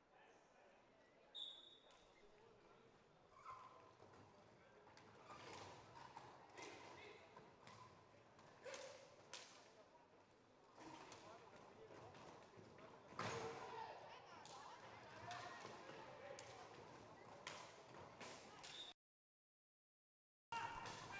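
Sticks clack against a ball and against each other.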